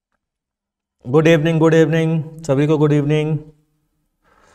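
A young man speaks in a drawn-out, sing-song way close to a microphone.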